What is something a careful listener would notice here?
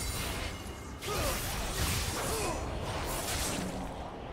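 Spell effects whoosh and crackle.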